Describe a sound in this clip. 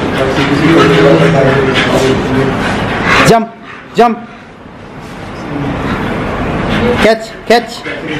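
Two dogs growl and snort as they play.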